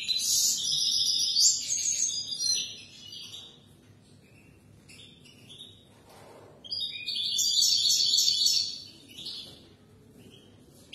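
A small bird sings a loud, fast warbling song close by, in bursts.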